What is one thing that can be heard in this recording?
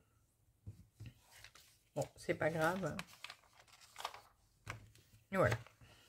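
Magazine pages rustle as they turn.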